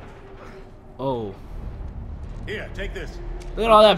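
An older man speaks urgently, close by.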